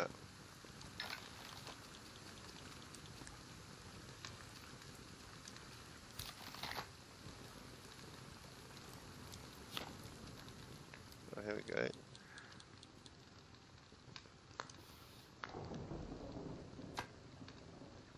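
Short soft menu clicks sound now and then.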